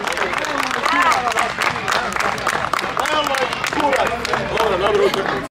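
A crowd cheers and shouts nearby.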